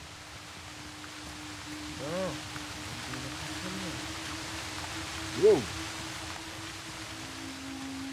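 Water rushes and splashes loudly.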